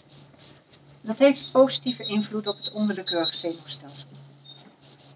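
An elderly woman speaks calmly and close by.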